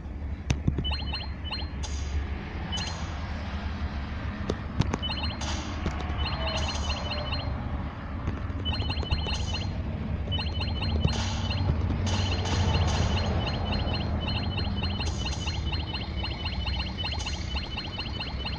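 Video game laser shots zap in quick bursts.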